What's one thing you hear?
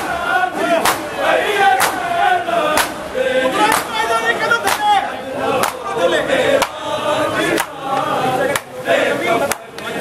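A large crowd of men chants loudly together.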